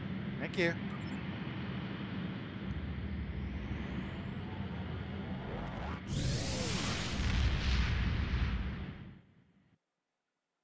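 A spaceship engine hums with a deep, steady rumble, then swells and fades away.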